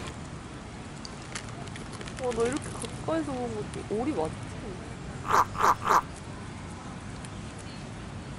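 A goose tears and crunches grass with its beak.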